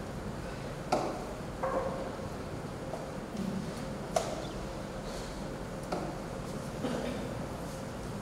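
A metal cup clinks against a dish.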